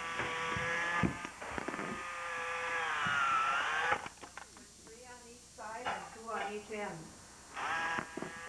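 A toy robot's motors whir as its legs move.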